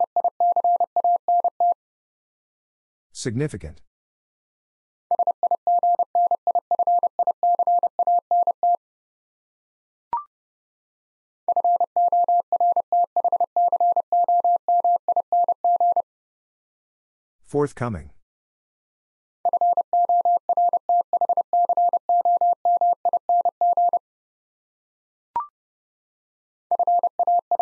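Morse code beeps out in quick, steady tones.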